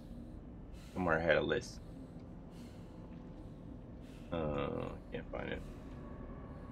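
A middle-aged man speaks briefly into a microphone, in short animated bursts.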